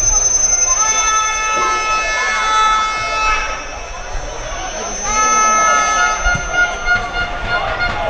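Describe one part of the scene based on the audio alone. A referee blows a whistle in long blasts.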